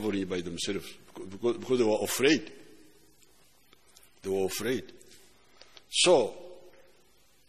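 An elderly man speaks with animation into a microphone, echoing in a large hall.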